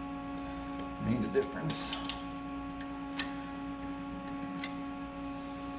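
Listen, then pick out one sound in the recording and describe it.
A chuck key clicks and clanks against a metal lathe chuck.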